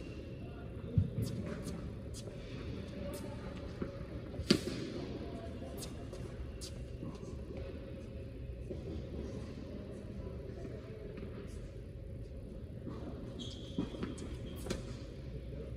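Tennis balls are struck with rackets, echoing in a large indoor hall.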